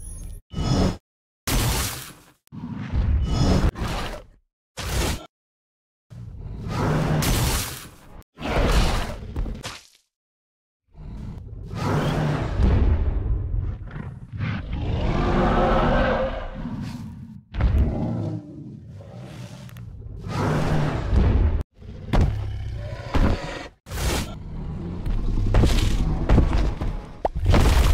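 Heavy blows and impacts thud in bursts.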